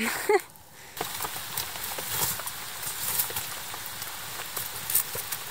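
A wood fire crackles and pops up close.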